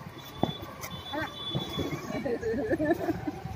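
A woman talks and laughs cheerfully close by.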